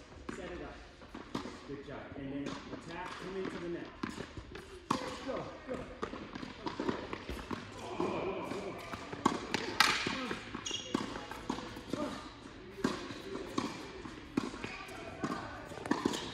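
Tennis balls are struck with rackets, each hit echoing through a large hall.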